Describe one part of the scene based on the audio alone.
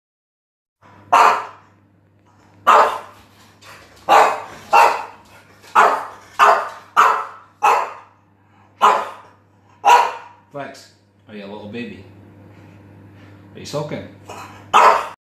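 A small dog barks sharply, over and over, close by.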